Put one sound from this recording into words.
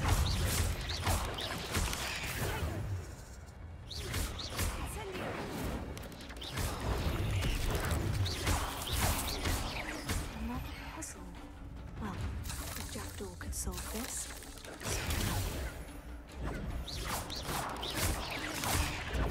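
Spiders screech and hiss.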